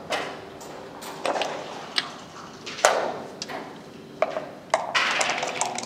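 Wooden checkers click sharply against a board.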